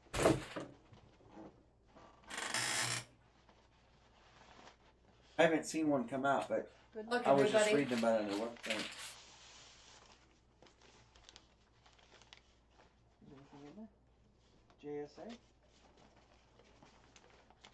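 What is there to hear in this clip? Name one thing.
A nylon bag rustles as it is handled.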